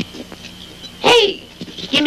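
An elderly man cries out loudly nearby.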